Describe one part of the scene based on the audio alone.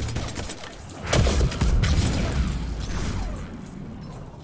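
A powerful blast bursts with a deep boom.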